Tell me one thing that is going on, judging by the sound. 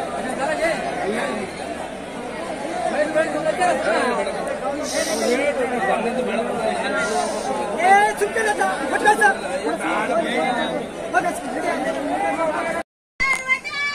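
A crowd of men chatters loudly all around outdoors.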